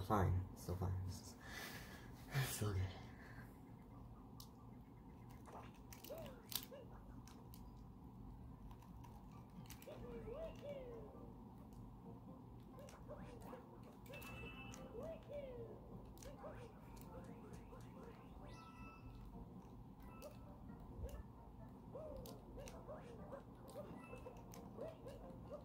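Video game sound effects chime and jingle through a small speaker.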